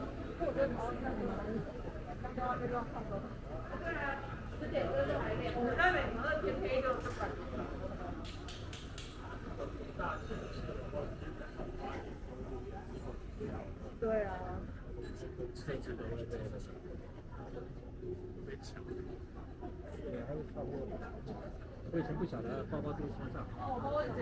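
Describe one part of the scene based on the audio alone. A busy crowd of people murmurs and chatters nearby outdoors.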